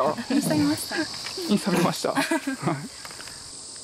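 A young woman talks cheerfully.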